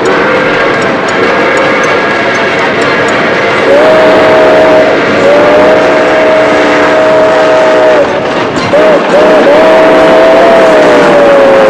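A steam locomotive chugs steadily along the track.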